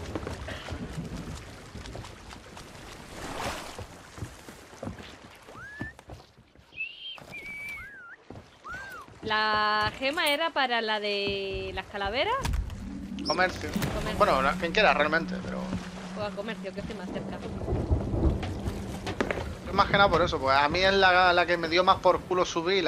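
Sea waves wash against a wooden ship.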